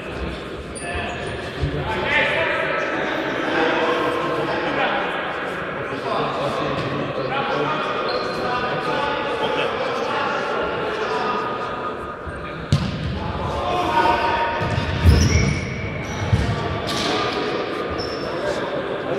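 Young men shout across an echoing sports hall.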